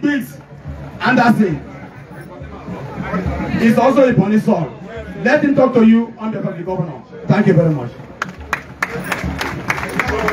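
A man speaks loudly and with animation into a microphone over loudspeakers.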